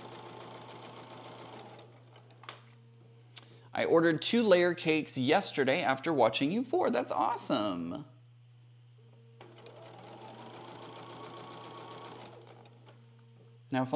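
A sewing machine whirs steadily.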